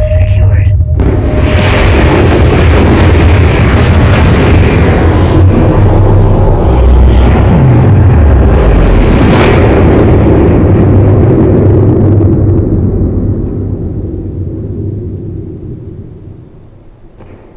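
A huge explosion booms and rumbles, then slowly fades away.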